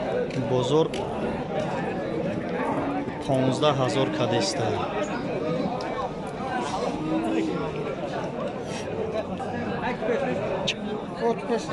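A crowd of men chatters outdoors.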